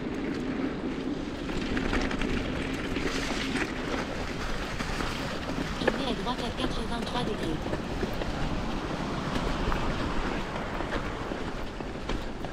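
Bicycle tyres crunch and rattle over a rough gravel path.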